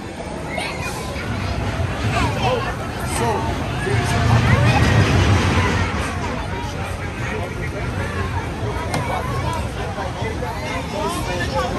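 A crowd chatters nearby.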